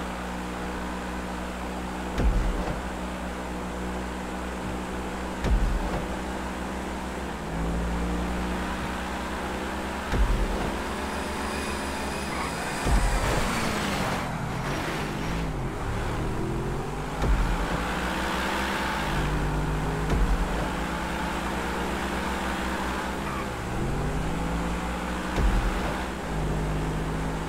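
A sports car engine roars at high speed, rising in pitch and dropping with each gear change.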